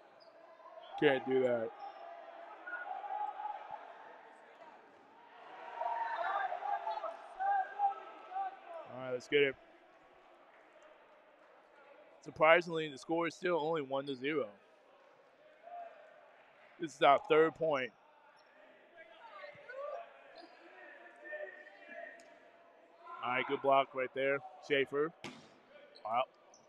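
Young men shout and cheer loudly in short bursts.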